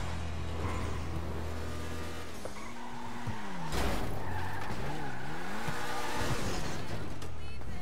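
A car engine roars and revs as a car drives.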